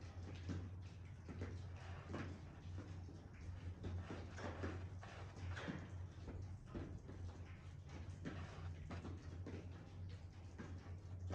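Pastel scrapes across a canvas in short, repeated strokes.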